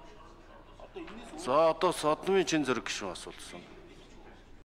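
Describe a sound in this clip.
Another man speaks briefly through a microphone in a large hall.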